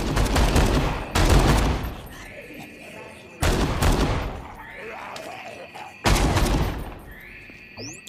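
A gun fires loud shots in bursts.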